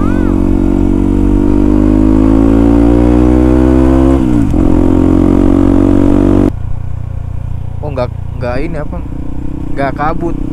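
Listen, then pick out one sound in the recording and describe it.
A motorcycle engine drones loudly, revs higher, then drops back.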